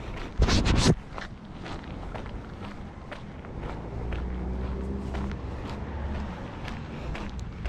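Footsteps tap steadily on a concrete pavement outdoors.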